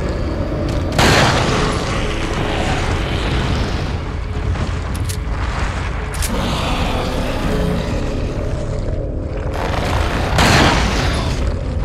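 A handgun fires sharp shots.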